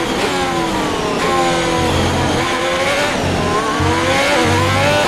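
A racing car engine screams at high revs, shifting up and down through the gears.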